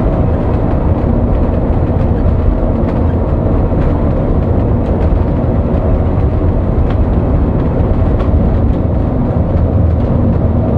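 A bus engine drones steadily from inside the cab.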